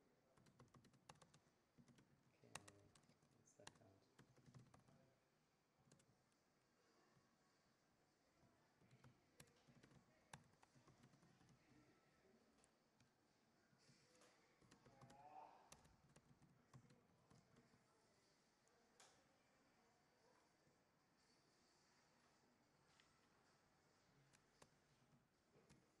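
A man types on a keyboard.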